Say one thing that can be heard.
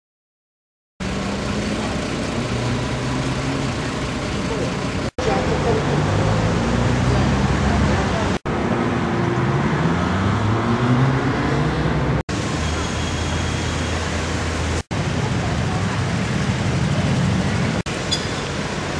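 A swollen river rushes steadily.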